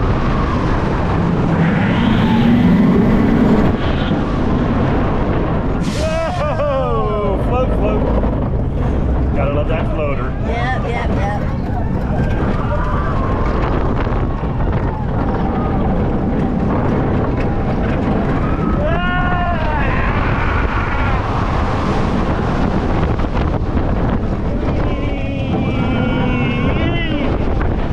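Wind roars loudly past a microphone on a fast ride.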